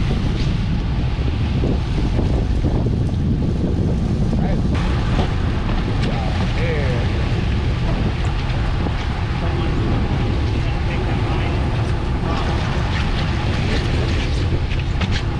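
Waves splash against a boat's hull.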